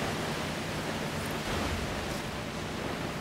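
Water splashes loudly under the wheels.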